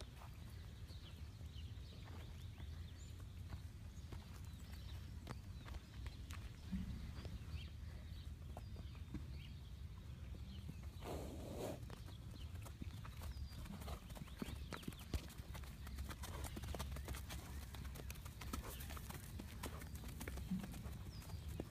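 Horses' hooves thud softly on dirt as they walk.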